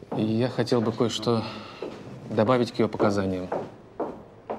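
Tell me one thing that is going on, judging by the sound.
A young man speaks earnestly, close by.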